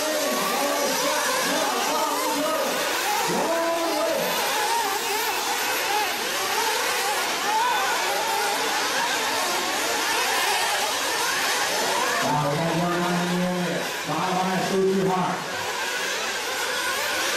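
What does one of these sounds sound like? Small electric model cars whine loudly, their pitch rising and falling.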